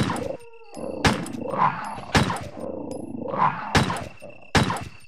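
Gunshots ring out one after another, each followed by a short echo.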